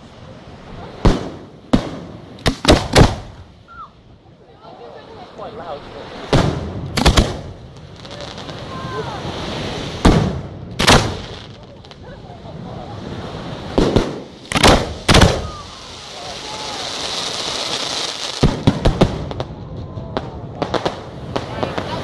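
Fireworks burst with loud booming bangs, echoing outdoors.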